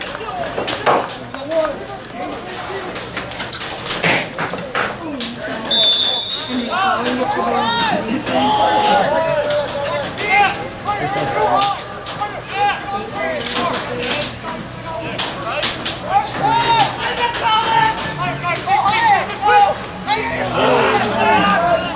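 Lacrosse sticks clack against each other.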